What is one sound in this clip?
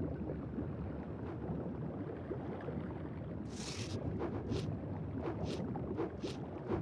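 A low, murky underwater rumble churns steadily.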